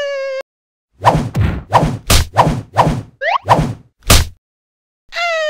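A metal chain with a spiked ball swings and clanks in quick bursts.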